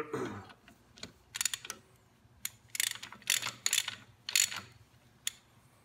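A ratchet wrench clicks rapidly as it turns a bolt.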